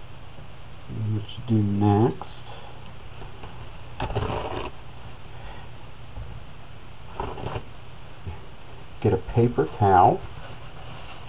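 A man speaks briefly and quietly, close by.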